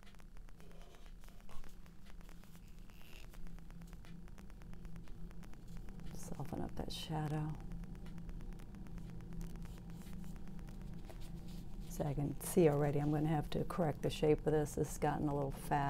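A paintbrush dabs and scrapes softly on canvas.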